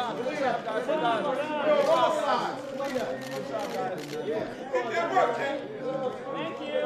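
Several men talk and shout over each other in a noisy crowd close by.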